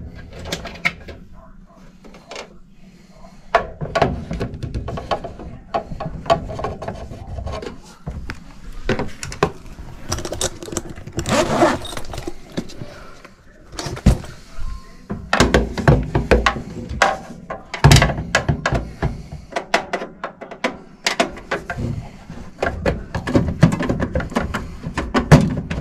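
Hands knock and rattle against a metal panel.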